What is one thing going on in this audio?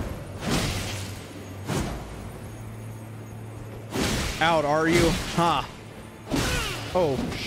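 Swords whoosh and clash in a fierce fight.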